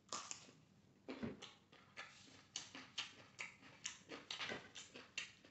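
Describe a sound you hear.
Crisp leaves crunch and crackle as a man bites them.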